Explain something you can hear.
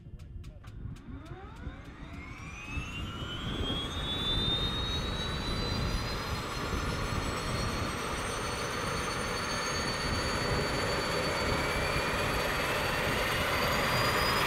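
An aircraft engine starts and revs up into a rising whine.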